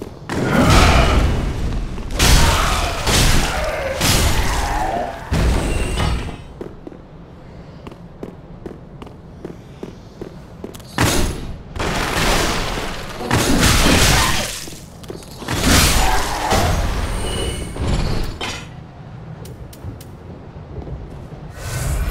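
Blades swing and strike in a close fight.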